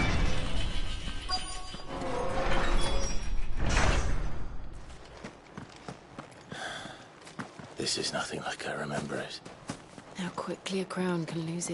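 Footsteps crunch on stone.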